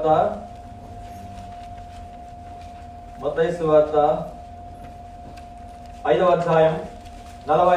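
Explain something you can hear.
A man speaks loudly through a microphone and loudspeakers in short bursts with pauses.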